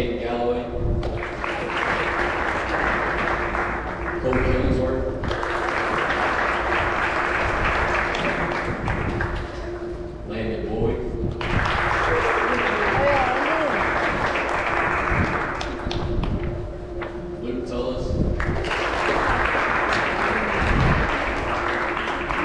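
An audience applauds in bursts.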